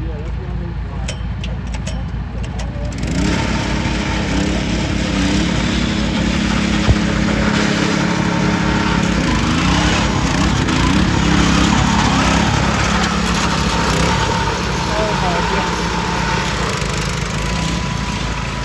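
A small mower engine roars and revs close by.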